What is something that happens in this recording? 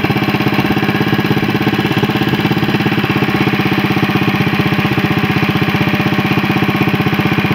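A small engine chugs steadily up close.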